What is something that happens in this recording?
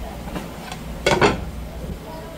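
A plate clatters down onto a hard counter.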